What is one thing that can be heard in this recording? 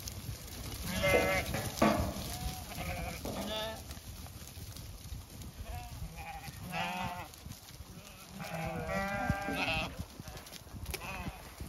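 Sheep hooves patter on dry ground.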